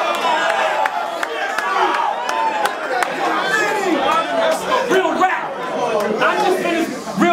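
People in a crowd clap their hands.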